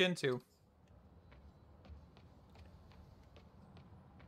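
Footsteps tap on a rooftop.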